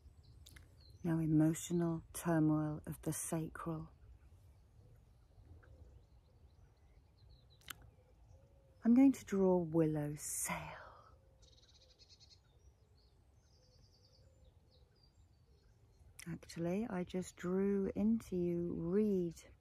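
A middle-aged woman speaks calmly and close up, with pauses.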